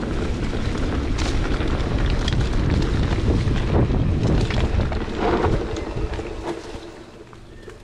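Wind rushes loudly past a rider on a fast downhill run.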